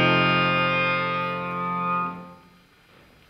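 A clarinet plays a held note in a reverberant hall, then stops.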